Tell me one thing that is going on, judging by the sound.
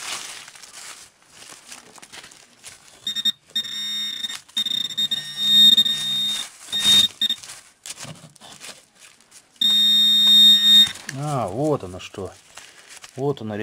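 Dry leaves rustle under a gloved hand.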